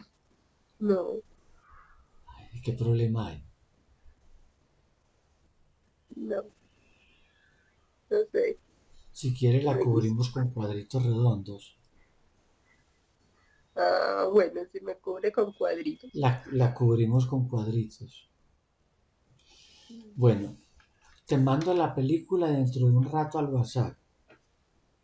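A middle-aged man speaks calmly and warmly over an online call.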